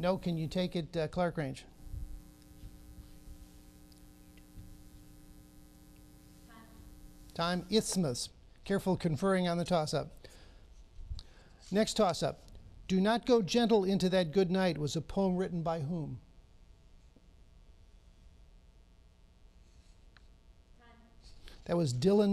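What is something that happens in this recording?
A middle-aged man reads out questions through a microphone.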